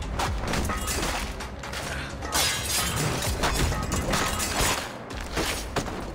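Blows thud and clothes rustle in a close fistfight.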